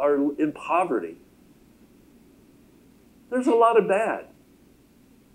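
A middle-aged man speaks calmly through a microphone.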